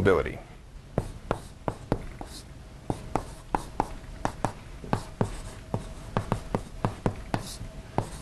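Chalk taps and clicks against a blackboard.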